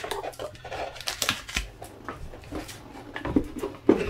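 A cardboard box lid scrapes and thumps as it is closed.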